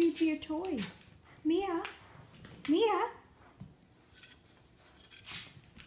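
A dog chews and tugs at a toy.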